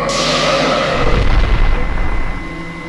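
An explosion booms and crackles.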